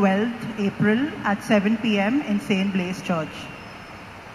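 A woman reads out through a microphone in a reverberant hall.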